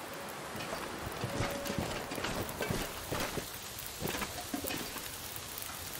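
A fire crackles and pops in a metal barrel.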